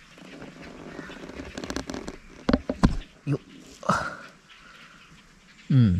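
A raccoon shuffles about on dry leaves inside a wire trap.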